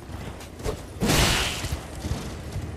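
A sword swings through the air with a loud whoosh.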